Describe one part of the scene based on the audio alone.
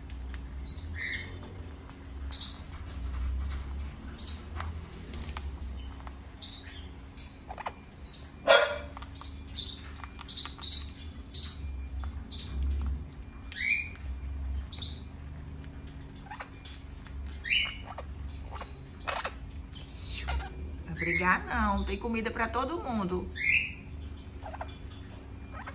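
A parrot pecks seeds from a bowl.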